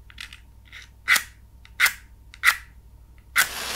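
Match heads strike against a matchbox several times.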